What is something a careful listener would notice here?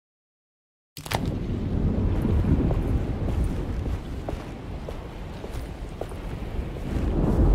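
A man's footsteps fall on stone.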